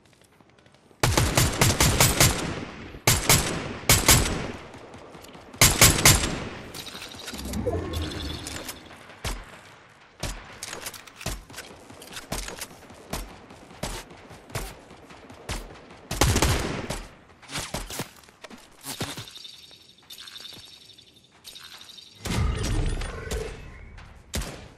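A rifle fires in rapid bursts of loud shots.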